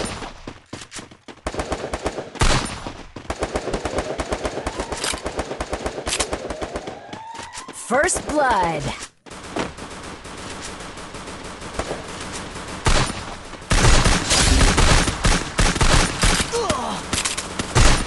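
Footsteps run quickly on concrete in a video game.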